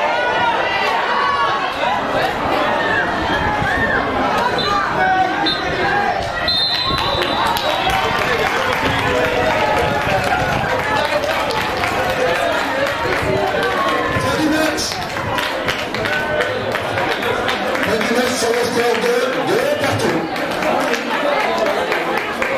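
A crowd of spectators cheers and shouts loudly outdoors.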